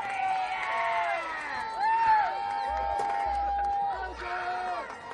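Football players shout and call out across an open field outdoors.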